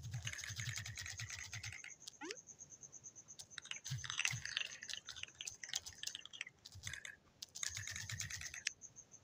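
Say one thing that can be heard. Quick plastic clicks patter in rapid bursts as blocks stack up.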